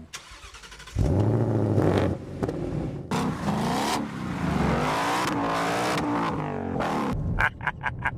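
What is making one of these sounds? A powerful car engine roars and rumbles loudly.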